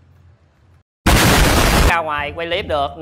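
A huge explosion booms.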